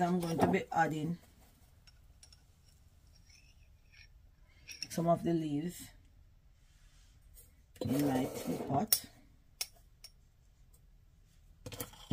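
A metal spoon scrapes and scoops dried herbs in a glass jar.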